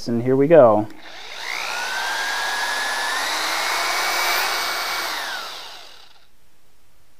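A power drill whirs steadily, its pitch rising.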